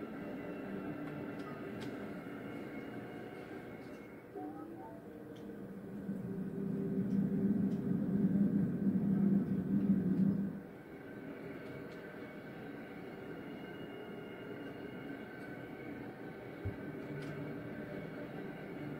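Electronic game music plays steadily through a loudspeaker, swelling louder for a few seconds in the middle.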